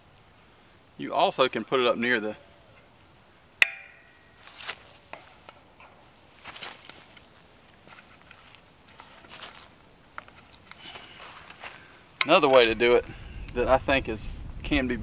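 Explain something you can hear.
A middle-aged man speaks calmly outdoors, close by.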